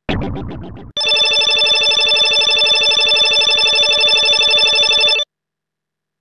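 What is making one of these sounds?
Rapid electronic beeps tick quickly as a game score counts up.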